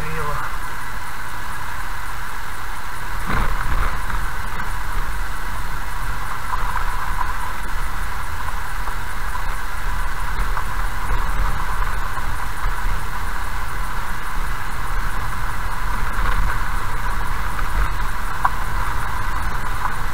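Tyres crunch and rumble on a gravel road.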